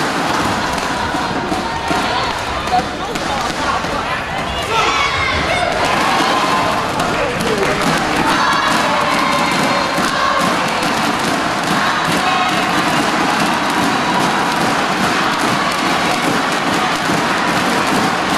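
A large crowd cheers and murmurs in an echoing hall.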